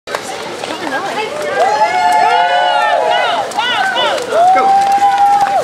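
A woman cheers and whoops loudly nearby, outdoors.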